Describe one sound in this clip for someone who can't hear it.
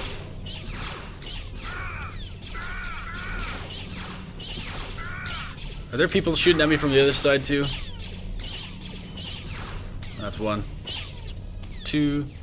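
Blaster shots zap and ricochet off a lightsaber.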